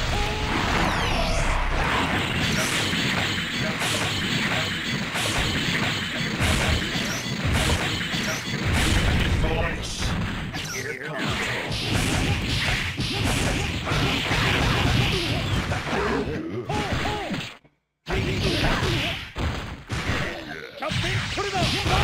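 Rapid punches, blasts and hit effects crackle and thump in a fighting game.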